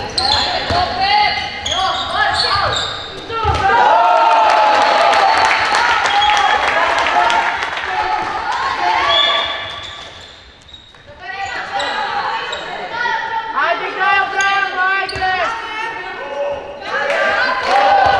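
Young girls shout to each other in a large echoing hall.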